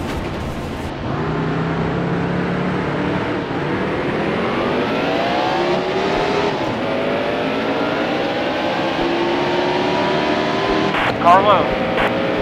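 A race car engine roars and climbs in pitch as the car speeds up.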